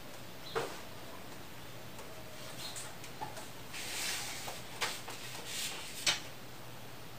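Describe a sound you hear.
A chair creaks and knocks as a person sits down on it.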